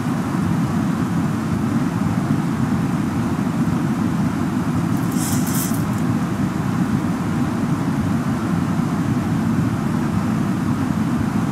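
Windshield wipers sweep back and forth with a steady swishing.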